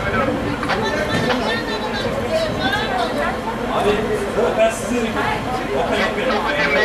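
A crowd of men shouts and chants nearby outdoors.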